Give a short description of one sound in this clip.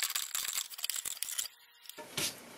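A chisel scrapes and shaves wood in quick strokes.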